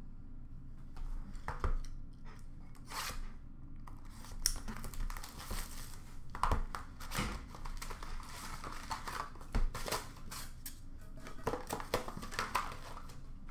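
Cardboard boxes and card packs rustle and knock as hands sort them.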